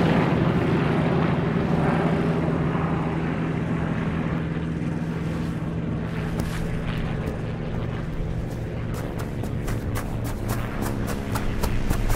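A propeller plane engine drones and roars overhead.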